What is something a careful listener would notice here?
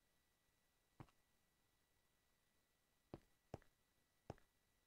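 Game footsteps thud a few times on blocks.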